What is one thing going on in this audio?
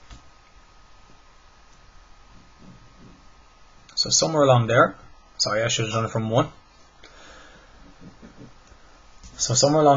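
A pencil scratches lightly across paper.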